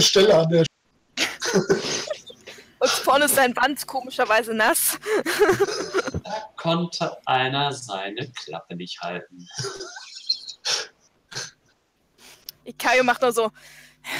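Young men laugh over an online call.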